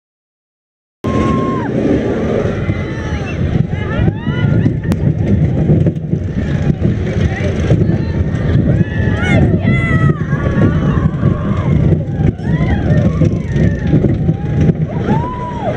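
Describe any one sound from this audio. A roller coaster rumbles and rattles along its track.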